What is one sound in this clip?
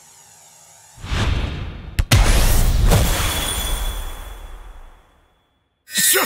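A loud rushing whoosh sweeps past and slowly fades.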